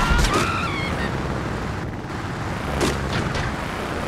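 Cardboard boxes crash and scatter as a car hits them.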